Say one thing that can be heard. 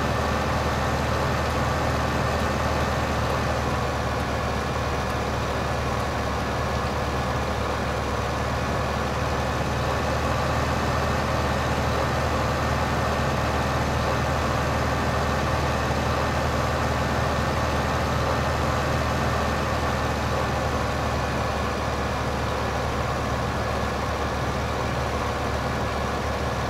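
A tractor engine drones steadily as it drives along.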